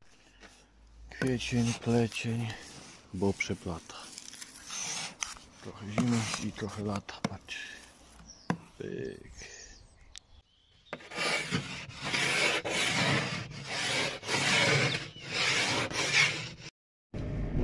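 A scraper scrapes frost off a car windshield.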